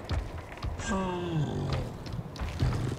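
A large creature gives a low, falling groan.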